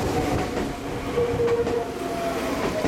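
Tram wheels squeal on the rails.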